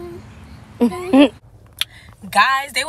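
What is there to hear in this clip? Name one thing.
A young woman talks close to a phone microphone.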